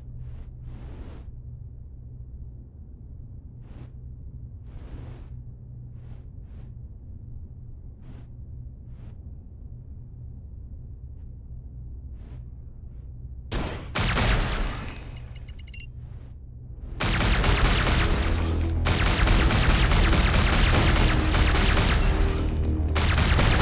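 A spacecraft engine hums low and steadily.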